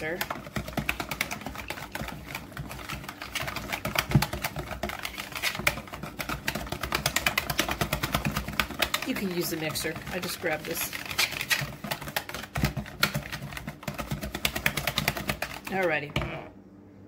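A wire whisk beats batter quickly against a plastic bowl.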